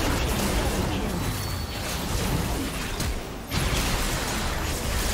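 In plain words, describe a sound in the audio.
Magic spells and fighting effects from a video game crackle and boom.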